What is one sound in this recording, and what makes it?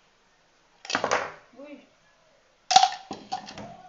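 A plastic jug knocks down onto a table.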